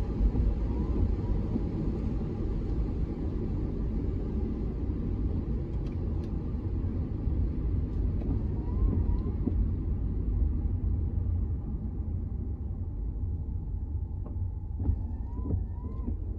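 A windshield wiper sweeps across the glass.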